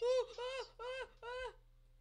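A pig grunts nearby.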